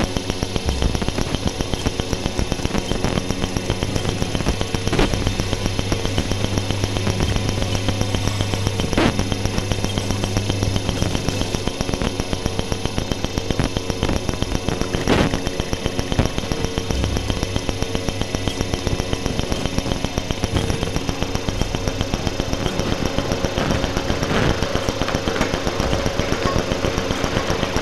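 Electronic music with a fast, steady pulse plays loudly from loudspeakers.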